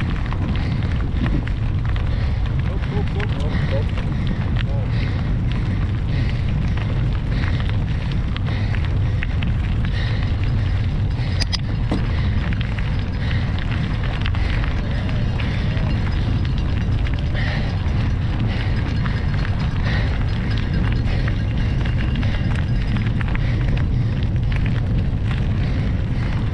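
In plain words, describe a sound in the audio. Wind blows loudly and steadily outdoors.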